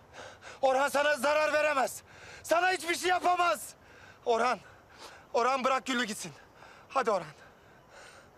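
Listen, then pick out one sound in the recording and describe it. A man shouts pleadingly, close by.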